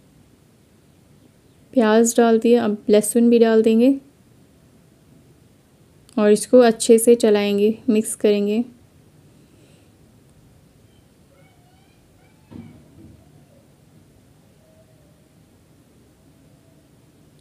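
Liquid simmers gently in a pot.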